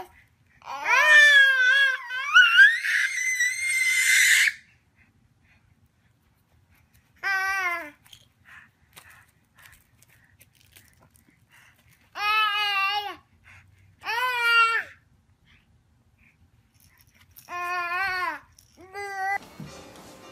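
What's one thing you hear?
Babies squeal and laugh loudly close by.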